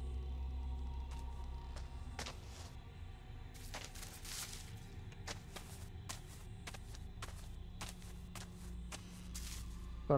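Footsteps crunch on leaves and dirt outdoors.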